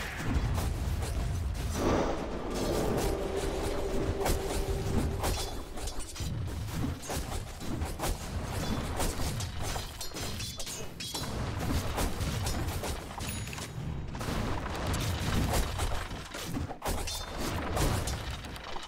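Game characters' weapons strike with sharp impacts.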